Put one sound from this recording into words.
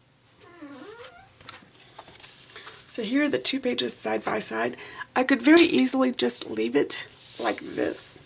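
Stiff paper rustles and slides as pages are handled.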